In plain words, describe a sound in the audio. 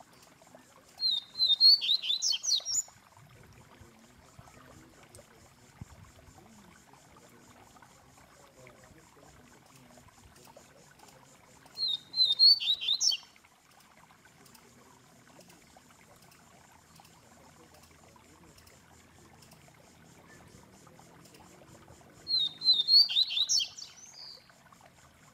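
A caged bird sings short, loud, chirping bursts of song close by, with long pauses between them.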